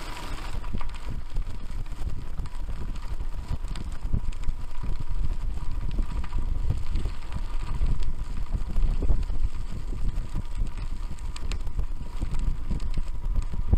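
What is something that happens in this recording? Wind rumbles against a moving microphone outdoors.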